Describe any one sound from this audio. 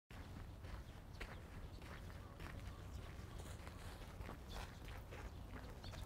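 A man's footsteps crunch on gravel.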